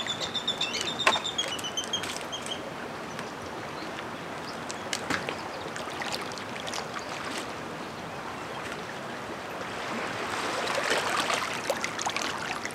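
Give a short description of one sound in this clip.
A wooden branch knocks and scrapes against rocks.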